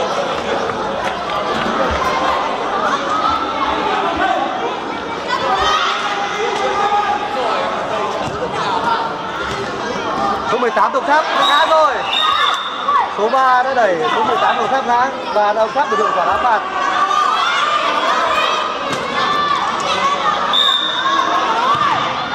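A crowd of spectators chatters and cheers.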